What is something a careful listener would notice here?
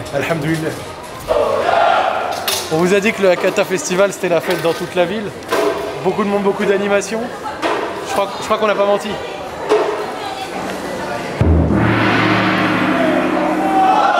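A crowd murmurs in a busy street.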